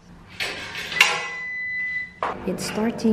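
A washing machine beeps as a button is pressed.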